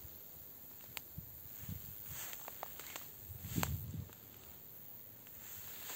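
Leaves and tall grass rustle softly in a light breeze outdoors.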